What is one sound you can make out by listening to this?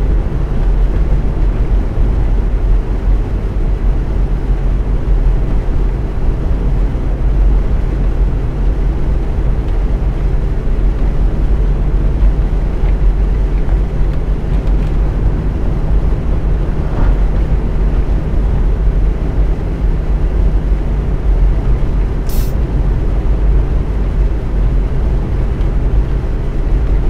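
A bus engine hums steadily with a low rumble.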